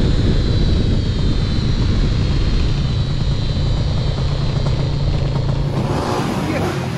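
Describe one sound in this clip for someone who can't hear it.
A motorcycle engine roars at speed.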